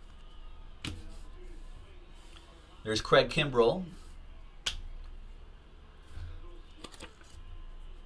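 Cards slide and tap against each other.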